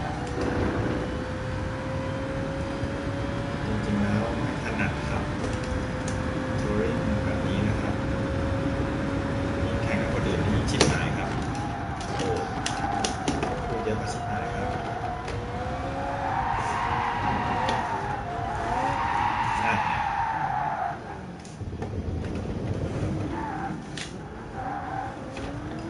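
A racing car engine roars, climbing steadily in pitch, then dropping as the car slows.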